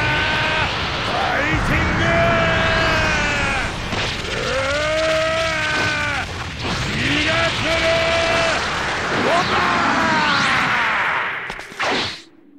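A man roars and screams with strain.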